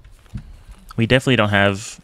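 A young man speaks through a headset microphone, close and with animation.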